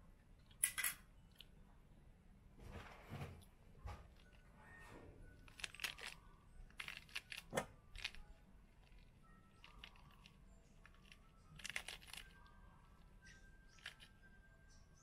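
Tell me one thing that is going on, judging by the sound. Hands break apart a pomegranate with soft tearing and cracking.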